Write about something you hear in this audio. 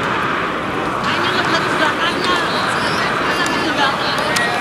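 Young children shout outdoors in the distance.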